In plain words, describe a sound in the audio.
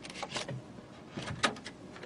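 A disk slides and clicks into a drive slot.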